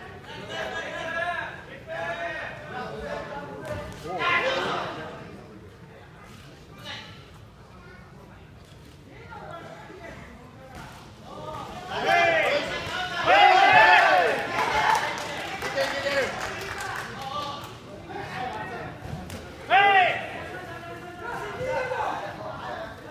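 Spectators in a large echoing hall shout and cheer loudly.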